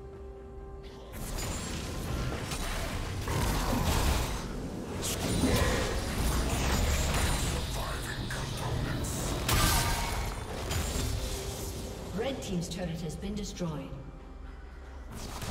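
Game sounds of a fight burst out, with spell blasts and hits.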